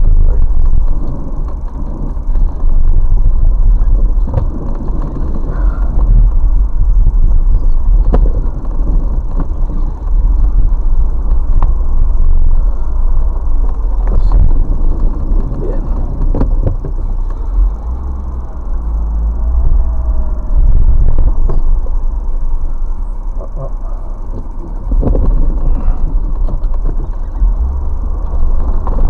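A car engine rumbles low and steady from inside the car.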